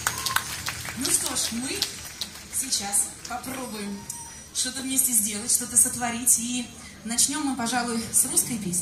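A woman sings into a microphone, heard through loudspeakers.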